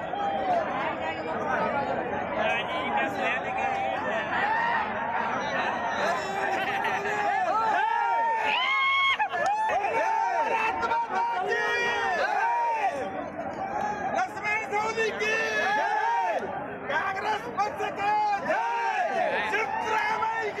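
A crowd of men cheers and shouts loudly outdoors.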